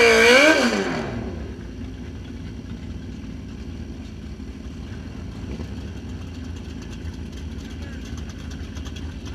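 A motorcycle engine idles with a low, steady rumble.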